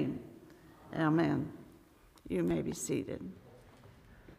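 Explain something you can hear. An elderly woman speaks calmly through a microphone in an echoing room.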